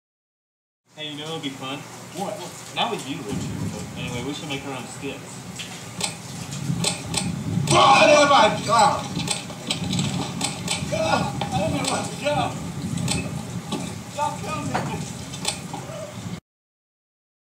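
Teenage boys talk with animation nearby.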